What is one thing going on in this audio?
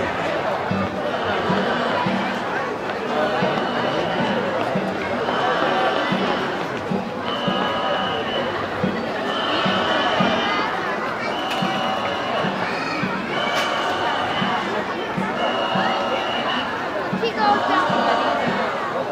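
A large group of men and boys chant together in a steady rhythm.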